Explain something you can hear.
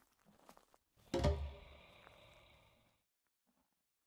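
A deep boom hits and rings out, slowly fading.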